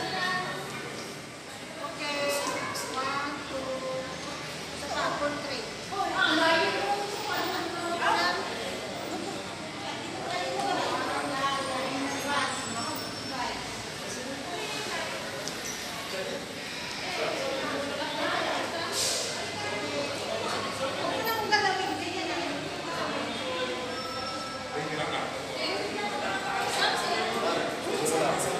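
A woman talks with animation, close to the microphone.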